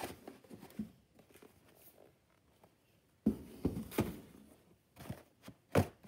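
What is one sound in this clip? A plastic bag crinkles and rustles as it is handled close by.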